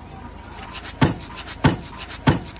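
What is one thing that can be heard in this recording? A foot kicks a wooden table with sharp thuds.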